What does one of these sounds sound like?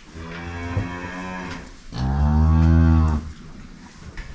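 A cow moos loudly and long, close by.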